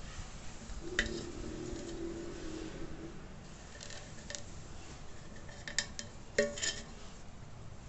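A tin can clanks as it is handled and rings briefly.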